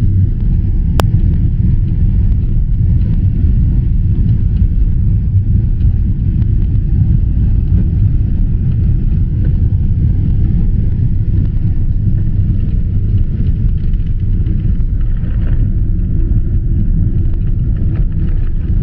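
Airplane tyres rumble along the runway.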